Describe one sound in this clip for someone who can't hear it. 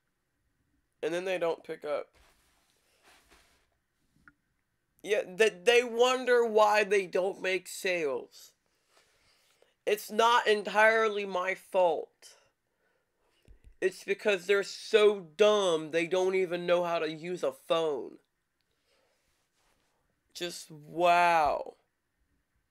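A teenage boy talks with animation close to a microphone, in short bursts with pauses.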